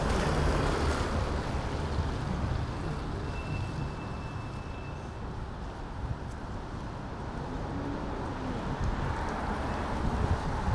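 A truck engine idles nearby with a low rumble.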